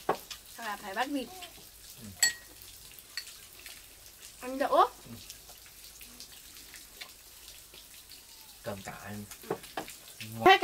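A young woman talks softly close by.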